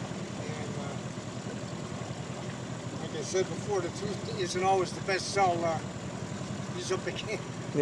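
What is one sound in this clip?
An outboard motor hums steadily.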